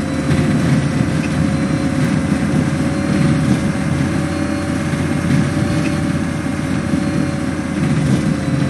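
Bus tyres rumble over a rough gravel road.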